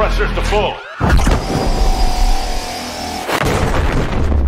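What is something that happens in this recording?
A huge energy cannon fires a beam with a loud burst.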